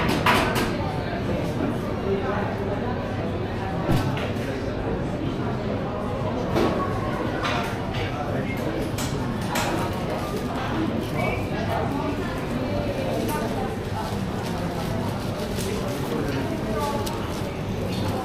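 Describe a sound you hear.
A crowd murmurs steadily in a busy indoor space.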